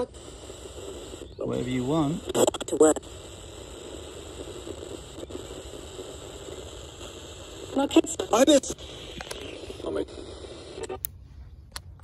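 A radio plays through a small, tinny loudspeaker outdoors.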